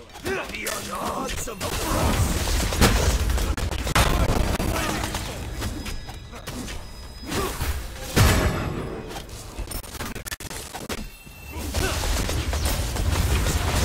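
Magic spells crackle and burst in quick blasts.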